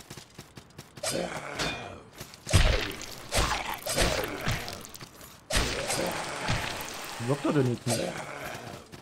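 Heavy blows strike and thud in a fight.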